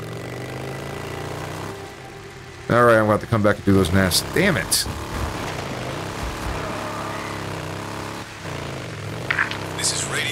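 A motorcycle engine hums and rises and falls in pitch as it rides along.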